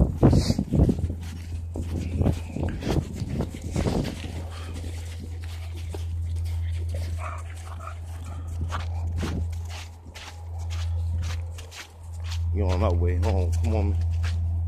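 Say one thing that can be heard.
A metal chain leash jingles.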